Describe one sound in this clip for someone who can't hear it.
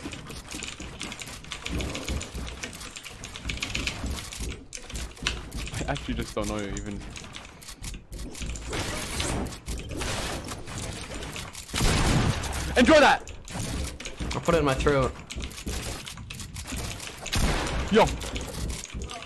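Keyboard keys and a mouse click rapidly.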